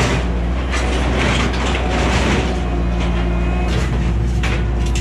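Sheet metal scrapes and clatters as a loader dumps it into a truck bed.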